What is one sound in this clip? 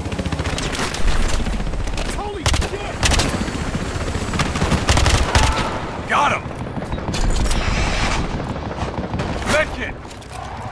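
Rifle shots crack and boom in short bursts.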